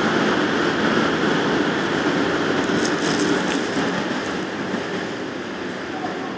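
A freight train rumbles and clatters past close by.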